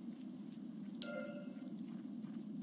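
A game chime sounds briefly as a quest updates.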